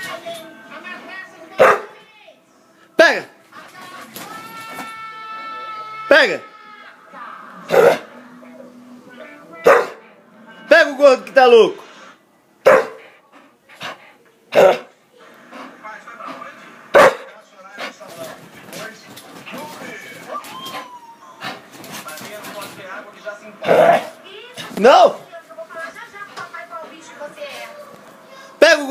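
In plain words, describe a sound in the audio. A dog growls playfully, close by.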